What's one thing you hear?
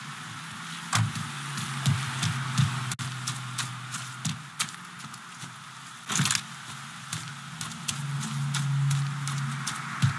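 Footsteps scuff on wet pavement.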